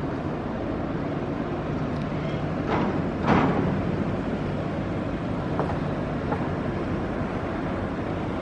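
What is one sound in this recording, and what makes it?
Water churns and splashes under a boat's hull.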